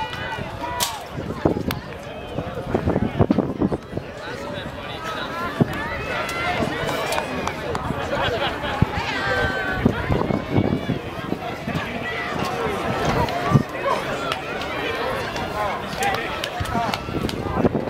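A crowd of young people chatter all around outdoors.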